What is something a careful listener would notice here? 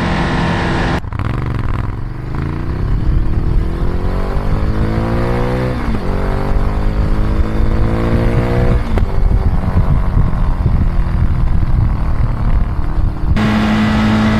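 A Ducati V-twin motorcycle accelerates hard through the gears.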